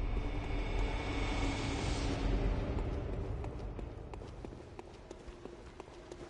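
Footsteps scrape on a stone floor.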